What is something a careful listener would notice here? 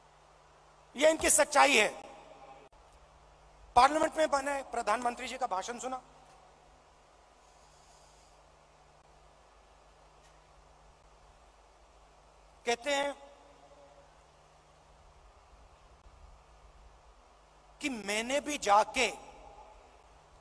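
A middle-aged man speaks forcefully through a microphone and loudspeakers, in short bursts with long pauses.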